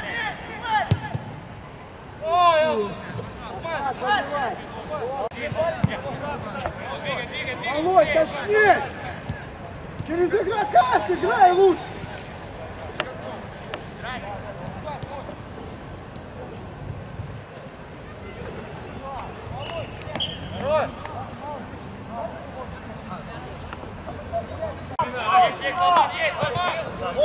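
Young men shout to each other outdoors, some way off.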